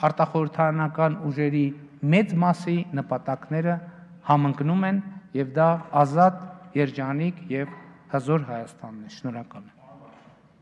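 A middle-aged man speaks firmly into a microphone in a large echoing hall.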